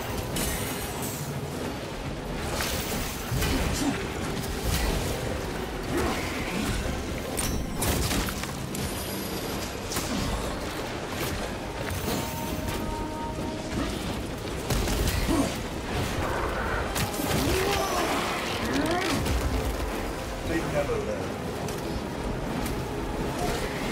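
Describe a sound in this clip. Heavy blades slash and thud into monsters in quick bursts.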